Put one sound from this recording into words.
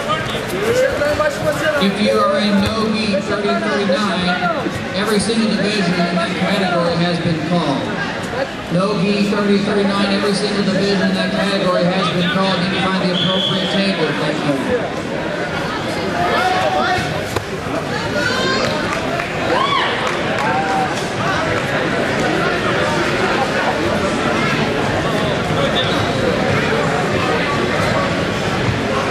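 Men in the crowd yell instructions with animation.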